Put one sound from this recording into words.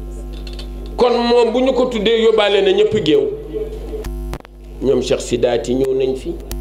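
An elderly man speaks with animation through a microphone and loudspeakers, heard in a reverberant space.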